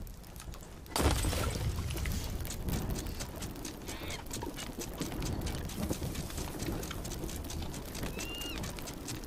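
A fire bursts up with a loud whoosh and keeps roaring and crackling.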